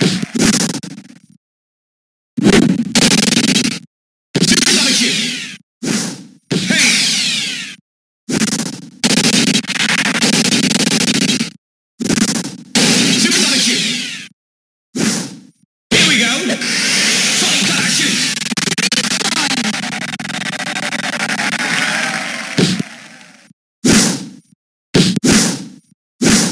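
Game sound effects whoosh and zap as a disc is thrown back and forth.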